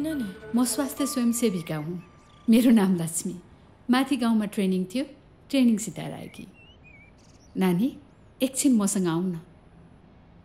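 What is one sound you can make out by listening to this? A middle-aged woman speaks earnestly, close by.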